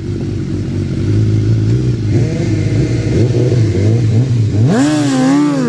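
A motorcycle engine idles and revs loudly close by.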